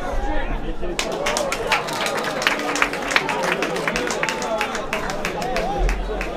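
Spectators clap their hands in brisk applause.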